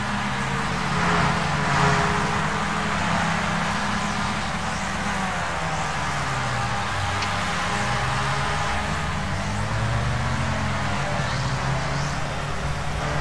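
Several racing car engines drone and whine as cars pass.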